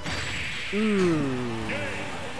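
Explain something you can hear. A heavy punch lands with a loud crack and whoosh.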